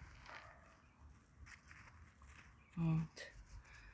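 A hand brushes and presses dry soil.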